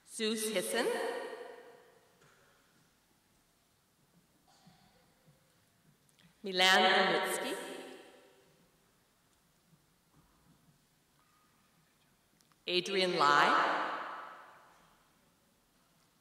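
A woman reads out over a loudspeaker in a large echoing hall.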